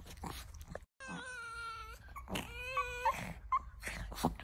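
A small dog whines and squeals in a high voice.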